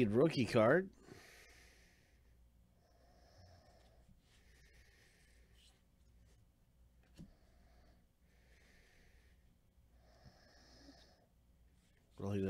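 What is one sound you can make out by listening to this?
Cards rustle and slide softly against each other.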